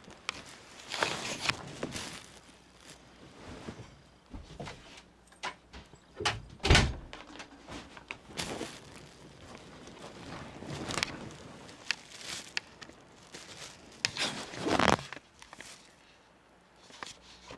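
A plastic bag crinkles and rustles close by.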